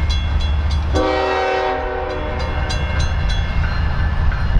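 A train horn blows loudly as a train approaches.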